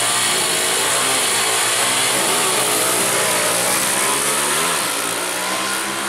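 Small motorcycle engines rev loudly, the pitch rising and falling.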